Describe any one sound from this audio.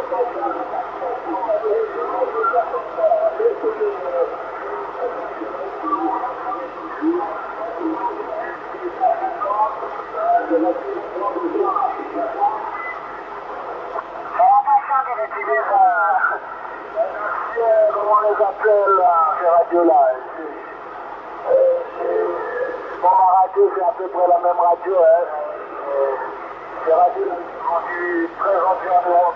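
A man talks through a crackly radio loudspeaker.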